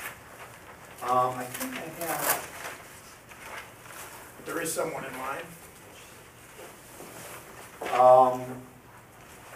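A middle-aged man speaks calmly across a room.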